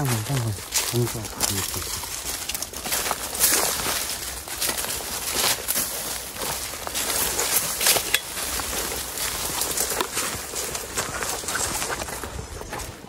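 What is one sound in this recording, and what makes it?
Leafy branches rustle and scrape against a person pushing through dense brush.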